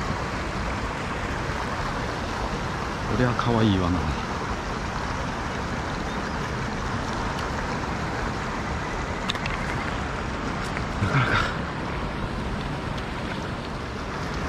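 A shallow river rushes steadily over stones.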